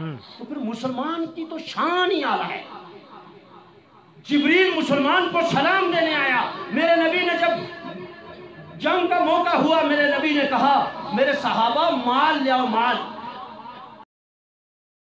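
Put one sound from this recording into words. A man makes a forceful speech through a microphone and loudspeakers, outdoors.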